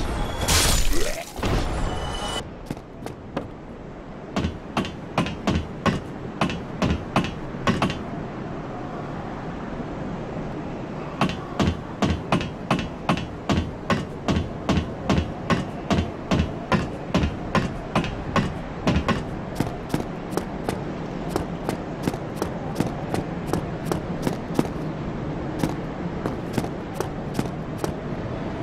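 Bare feet run on stone with quick, even footsteps.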